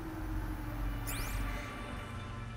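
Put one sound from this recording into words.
A high electronic whoosh sweeps down as a scanner switches off.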